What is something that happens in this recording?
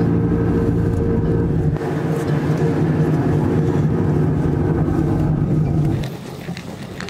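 A bus engine hums steadily from inside as the bus drives along.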